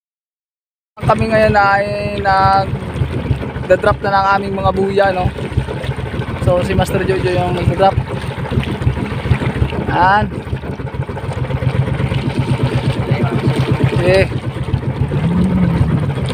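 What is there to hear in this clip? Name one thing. Water rushes and splashes along a moving boat's hull.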